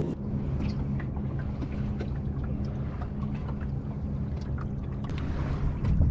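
Water splashes against the hull of a sailing dinghy under way.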